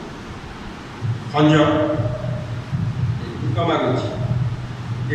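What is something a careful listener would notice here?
A man speaks through a microphone in an echoing hall, preaching with emphasis.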